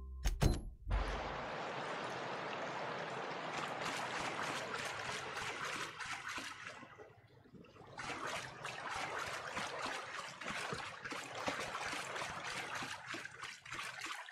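Footsteps crunch steadily on rocky ground.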